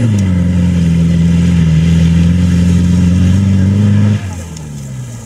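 An engine roars loudly as an off-road vehicle revs hard through mud.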